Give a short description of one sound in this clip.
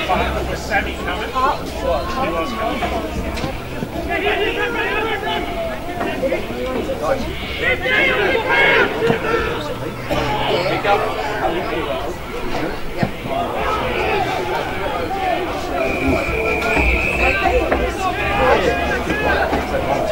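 Male players shout to each other on an open field.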